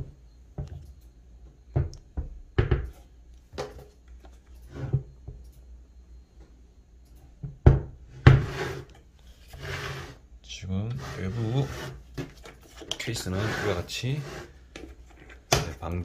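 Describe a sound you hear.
A hard plastic case knocks and bumps as hands turn it over.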